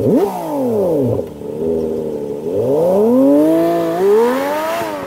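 A sports car engine revs loudly nearby.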